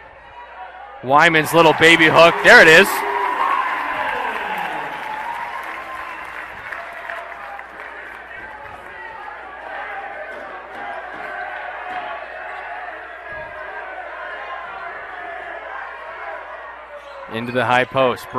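A large crowd cheers and roars in a big echoing hall.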